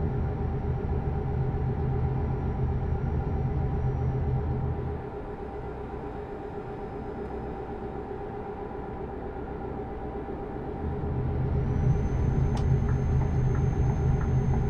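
Tyres rumble on a snowy road.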